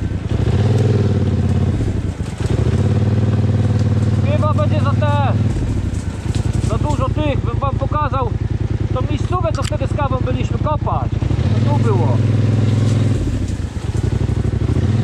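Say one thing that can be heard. A quad bike engine idles and revs up and down close by.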